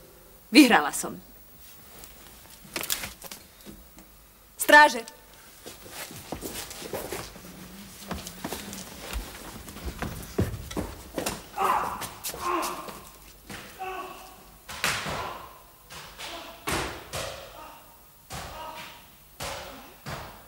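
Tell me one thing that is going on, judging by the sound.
A woman speaks calmly and clearly.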